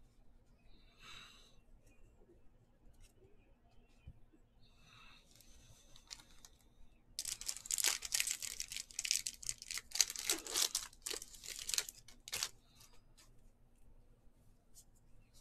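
Trading cards shuffle and flick between fingers.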